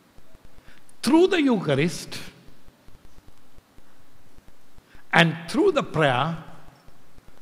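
An elderly man speaks into a microphone with animation, in short bursts.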